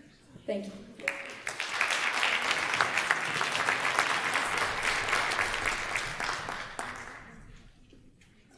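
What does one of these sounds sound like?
An audience applauds loudly and then fades.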